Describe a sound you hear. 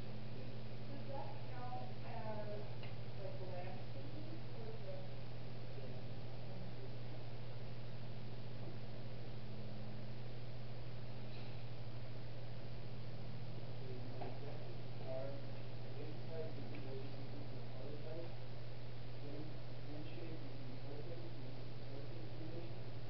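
A man speaks to a room, a little distant and slightly echoing.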